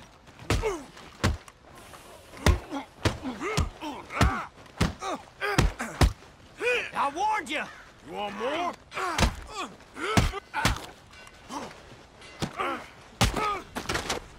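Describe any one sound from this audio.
Fists thud hard against bodies in a brawl.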